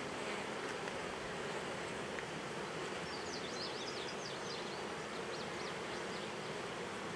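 Bees buzz steadily around an open hive outdoors.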